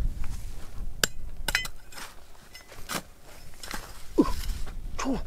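A small trowel scrapes and digs into loose dry dirt.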